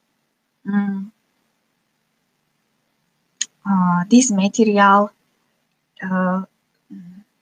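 A young woman speaks calmly through an online call, in short phrases with pauses.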